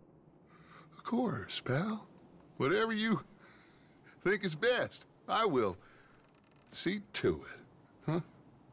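Another man answers in a calm, friendly voice.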